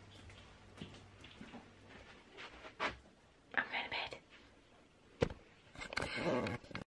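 A young woman speaks softly and close by.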